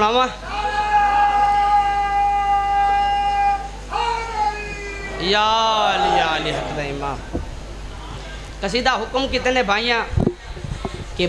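A young man chants a lament loudly into a microphone, heard through a loudspeaker.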